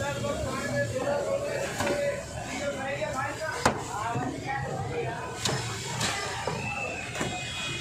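A knife scrapes across a wooden block.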